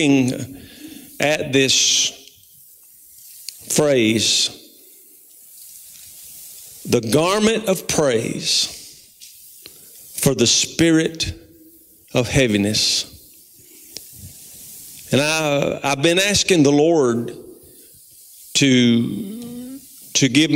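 A middle-aged man speaks calmly through a microphone in a large echoing room, with pauses between phrases.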